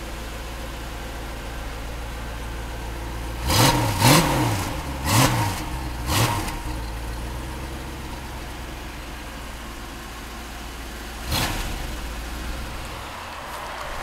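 A sports car engine idles with a low, steady rumble.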